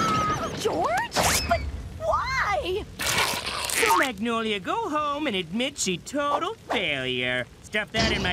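A man speaks with animation in an excited cartoon voice.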